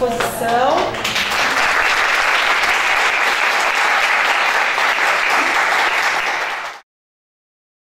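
A group of women applauds loudly.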